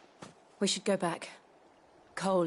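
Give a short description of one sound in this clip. A young woman speaks calmly and briefly.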